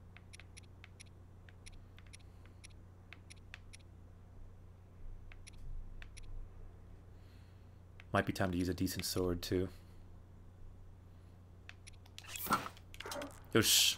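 Soft game menu clicks tick at a steady pace.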